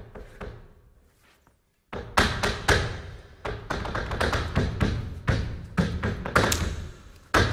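Dance shoes stamp and tap rapidly on a wooden stage, echoing in a large hall.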